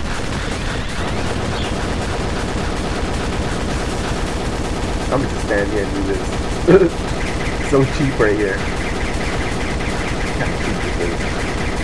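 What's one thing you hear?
Rapid shots and explosions crackle and boom without pause.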